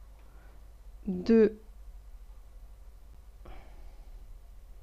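A woman speaks briefly and calmly into a close microphone.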